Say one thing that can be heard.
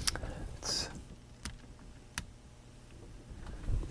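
A knob clicks softly as it is turned.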